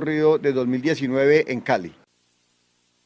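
A man speaks calmly into close microphones.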